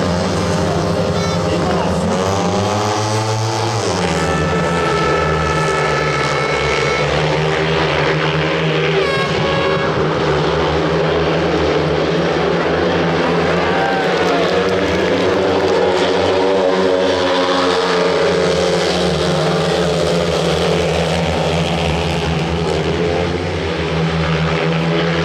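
Several motorcycle engines roar loudly, revving and whining as they race around a track.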